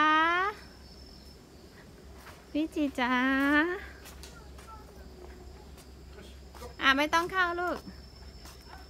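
A young child calls out loudly in a high, singsong voice.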